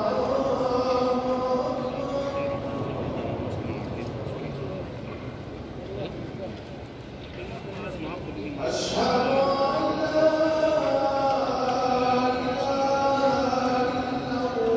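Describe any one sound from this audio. A large crowd murmurs softly in a large echoing hall.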